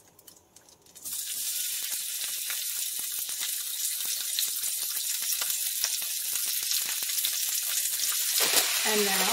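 Meat sizzles loudly in a hot pan.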